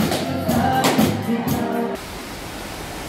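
Music plays in a large echoing hall.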